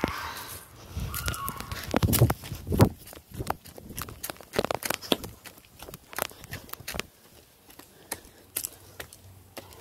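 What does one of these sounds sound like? Footsteps fall on grass and dirt.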